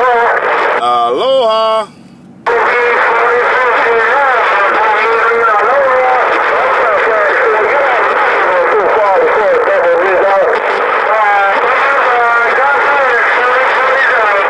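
Garbled, warbling voices crackle from a radio loudspeaker.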